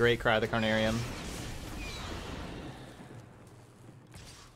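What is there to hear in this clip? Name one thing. A magical zap crackles and fades.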